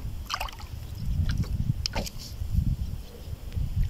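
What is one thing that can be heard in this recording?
A fish splashes in water close by.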